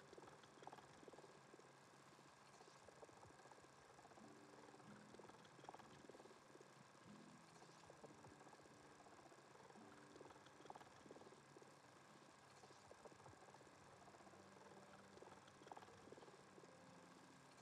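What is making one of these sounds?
An electronic scanning device hums and beeps with shifting tones.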